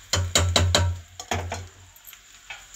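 A metal spoon clanks and scrapes against a metal pot.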